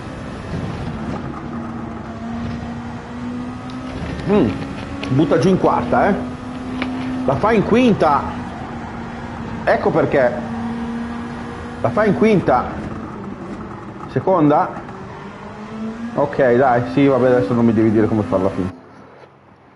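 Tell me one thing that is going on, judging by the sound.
A racing car engine drones and revs steadily.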